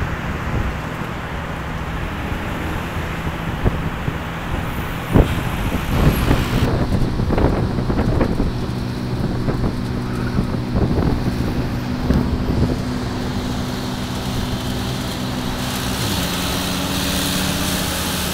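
Cars and buses drive along a city street.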